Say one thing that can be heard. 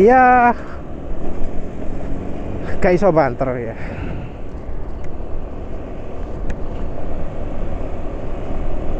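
Wind rushes past a moving rider outdoors.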